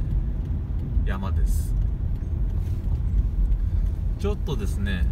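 A car engine hums with a low rumble of tyres on the road.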